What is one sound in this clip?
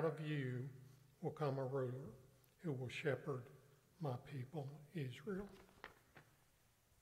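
A man speaks calmly through a microphone in a large echoing room.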